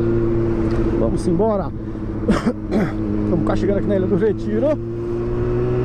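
A motorcycle engine revs sharply in quick bursts.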